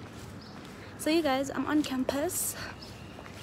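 A young woman speaks close up, with animation.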